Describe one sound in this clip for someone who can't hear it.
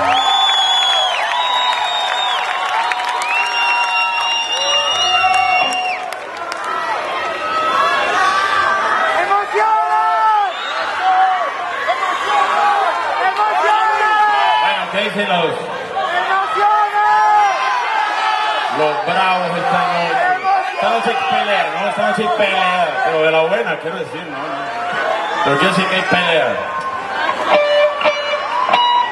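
A young man makes vocal sound effects and imitations into a microphone, heard through loudspeakers in a large hall.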